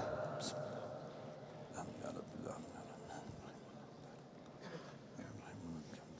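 An elderly man reads aloud slowly and calmly into a microphone.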